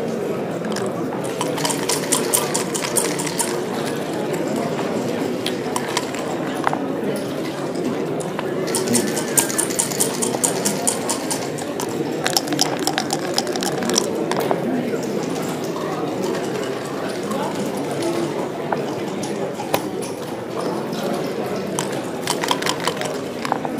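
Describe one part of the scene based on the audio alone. Plastic game pieces click and clack on a wooden board.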